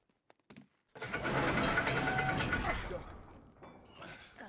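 A heavy iron gate grinds and scrapes as it is raised.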